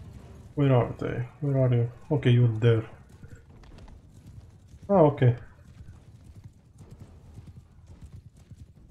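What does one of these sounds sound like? Horse hooves thud steadily across soft ground.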